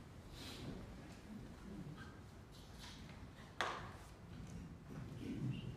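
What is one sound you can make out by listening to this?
Footsteps walk across a quiet room.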